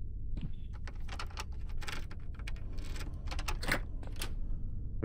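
A lock clicks as it is picked.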